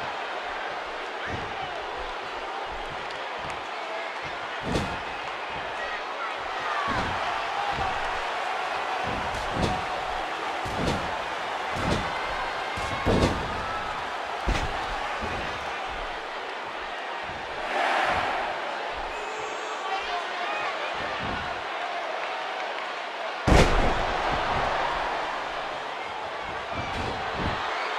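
A large crowd cheers and roars steadily.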